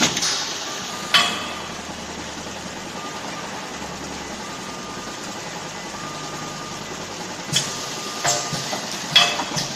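A packing machine hums and whirs steadily.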